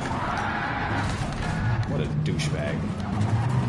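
A car crashes into a wall with a loud scraping bang.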